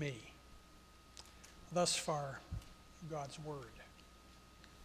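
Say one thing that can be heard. An elderly man speaks slowly and calmly into a microphone in a reverberant hall.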